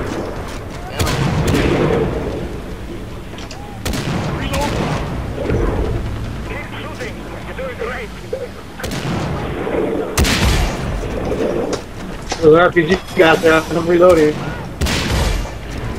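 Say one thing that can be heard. A sniper rifle fires loud, sharp shots that echo away.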